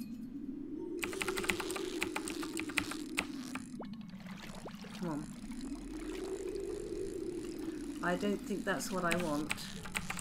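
A fishing reel whirs and rattles as a line is drawn in.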